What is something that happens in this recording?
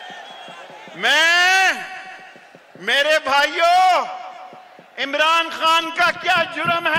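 A middle-aged man shouts forcefully into a microphone over loudspeakers.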